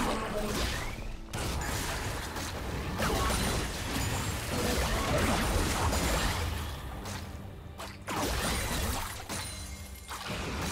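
Video game combat sound effects clash and burst.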